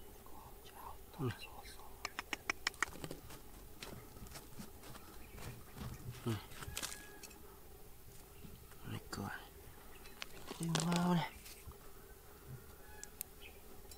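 Small stones click and rattle as fingers dig.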